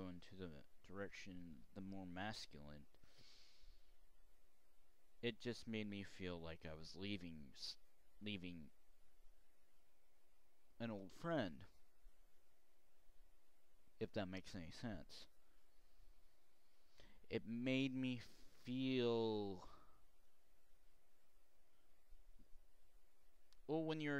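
A young man speaks calmly into a headset microphone, in short bursts with pauses.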